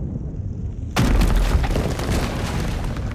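Flames roar and crackle around a warrior.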